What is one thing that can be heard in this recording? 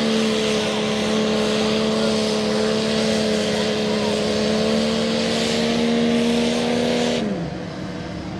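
A truck engine roars steadily as it churns through mud.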